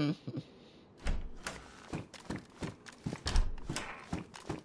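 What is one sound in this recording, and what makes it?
A door creaks and thuds open.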